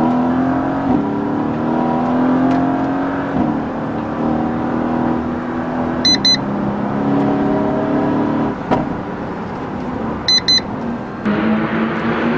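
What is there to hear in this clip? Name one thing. A car engine roars and revs from inside the cabin.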